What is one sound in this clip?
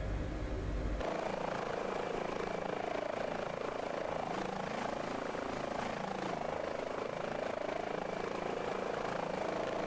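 Helicopter rotor blades whir and whoosh loudly from outside.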